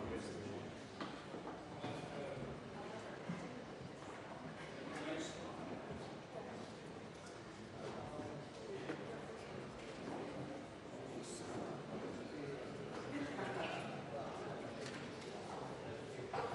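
A crowd of men and women murmur and chatter in a large echoing hall.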